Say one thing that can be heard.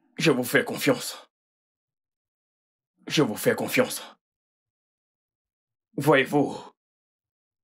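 A man speaks calmly and closely in short phrases.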